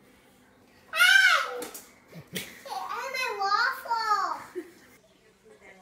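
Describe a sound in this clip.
A young boy shouts indignantly, close by.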